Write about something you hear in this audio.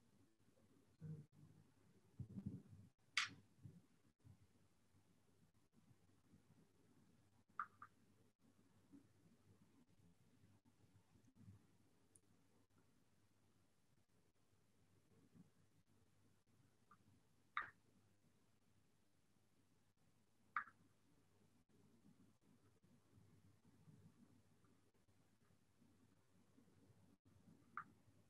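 A man speaks quietly and haltingly over an online call.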